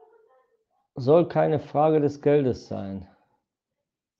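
A middle-aged man speaks closely into a microphone.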